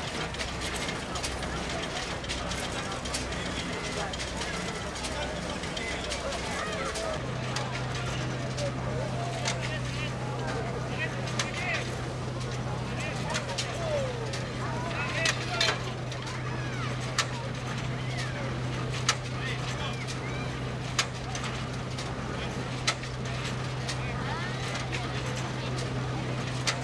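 A crowd chatters nearby outdoors.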